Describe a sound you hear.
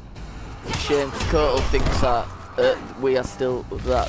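Heavy punches and kicks thud in a fight.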